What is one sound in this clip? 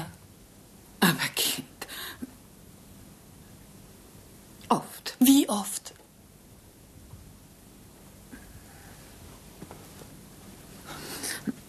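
A young woman speaks in short, urgent bursts close by.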